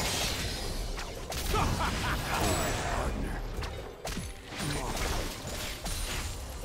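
Magic spells crackle and burst in a fast battle.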